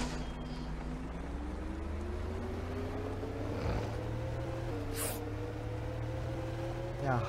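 A bus engine revs up steadily as the bus pulls away.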